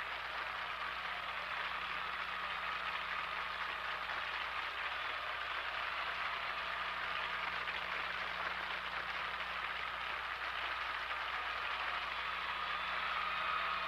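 A woman sings loudly.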